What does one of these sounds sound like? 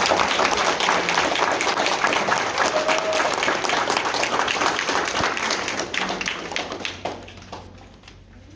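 A band with piano and horns plays loudly in a large hall.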